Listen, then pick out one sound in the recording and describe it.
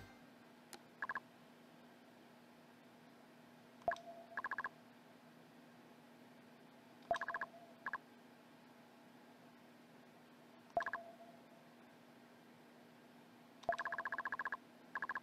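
Quick electronic blips chirp in short rapid bursts.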